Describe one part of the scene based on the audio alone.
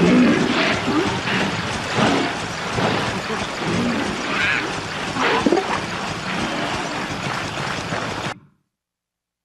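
Water splashes steadily as someone wades through it.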